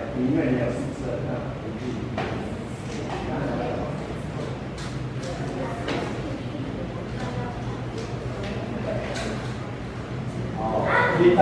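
Children chatter and talk over one another in an echoing room.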